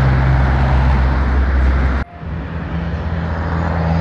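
A van drives past on the road.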